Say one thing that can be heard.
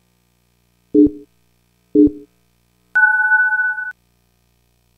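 Two short, low electronic beeps sound one second apart, followed by a longer, higher beep.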